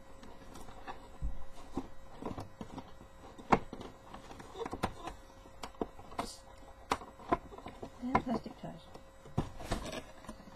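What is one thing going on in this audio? Paper or plastic rustles and crinkles close by.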